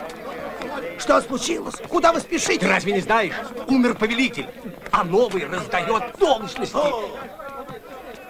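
Adult men talk close by.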